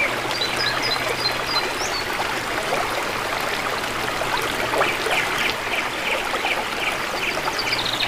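A cloth rubs over a wet board.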